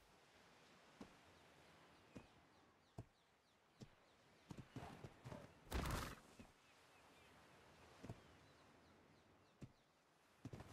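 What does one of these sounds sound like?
An animal's feet thump softly on the ground as it walks.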